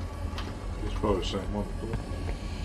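A young man speaks briefly and quietly into a microphone.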